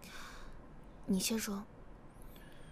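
A young woman speaks briefly and calmly nearby.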